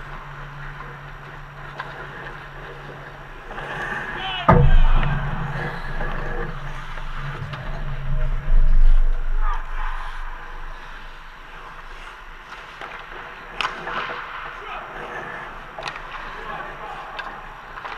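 Skate blades scrape and hiss across the ice.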